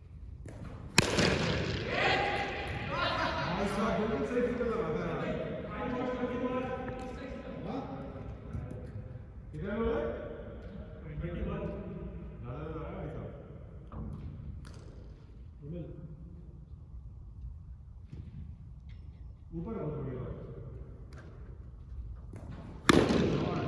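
A cricket bat strikes a ball with a sharp crack in a large echoing hall.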